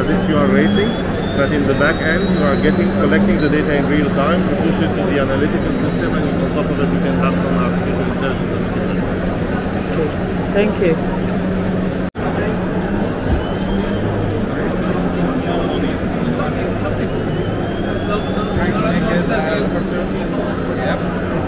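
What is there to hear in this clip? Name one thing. A crowd of people chatters in a large echoing hall.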